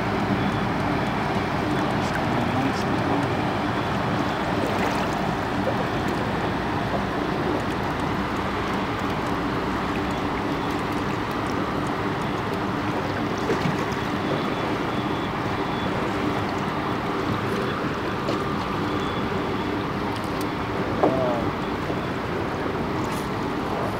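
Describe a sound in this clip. An outboard motor hums steadily nearby.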